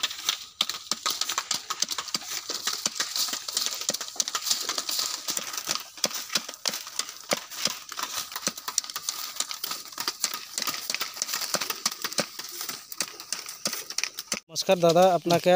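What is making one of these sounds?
A knife scrapes and shaves along bamboo strips in quick strokes.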